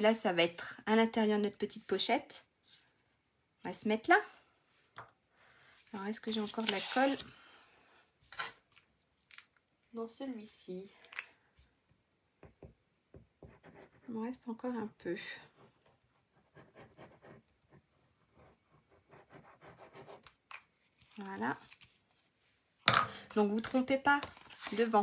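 Paper rustles as it is handled and folded.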